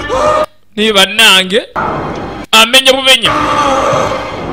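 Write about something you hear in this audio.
A man cries out in pain, close by.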